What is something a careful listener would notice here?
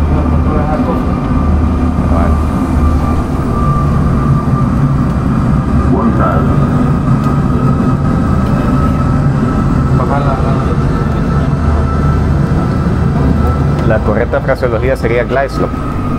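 A loud, steady low engine rumble drones throughout.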